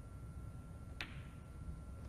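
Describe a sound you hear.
Snooker balls knock against each other.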